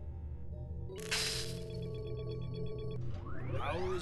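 An electronic chime sounds as a signal is confirmed.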